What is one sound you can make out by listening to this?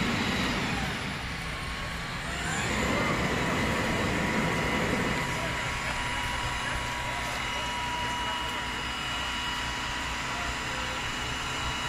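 A fire engine's motor rumbles steadily nearby, outdoors.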